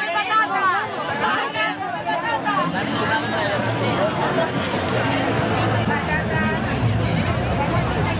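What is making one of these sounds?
A large outdoor crowd chatters and calls out in many voices.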